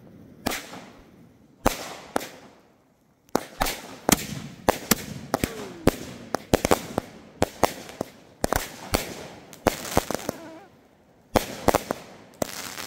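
Aerial fireworks burst with sharp bangs outdoors.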